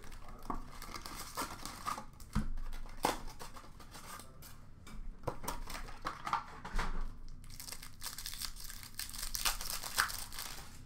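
Cardboard packs rustle and tap as hands sort them.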